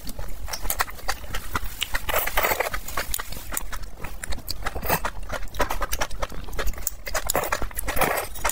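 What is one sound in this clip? A man slurps noodles loudly up close.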